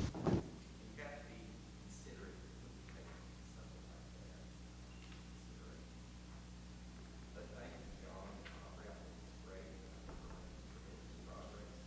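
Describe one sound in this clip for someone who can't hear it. A second older man speaks faintly through a distant microphone.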